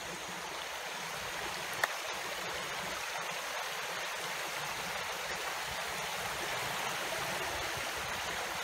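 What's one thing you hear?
A shallow stream trickles and babbles over rocks.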